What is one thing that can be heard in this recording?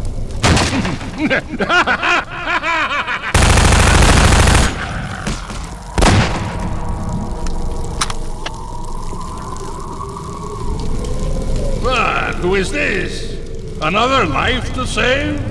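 A burning creature howls and groans.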